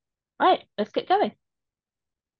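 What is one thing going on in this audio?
A teenage girl speaks briefly over an online call.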